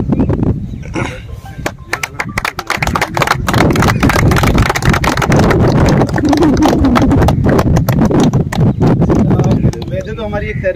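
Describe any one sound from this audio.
A group of people clap their hands in applause.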